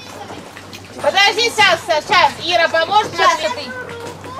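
A small child splashes in water.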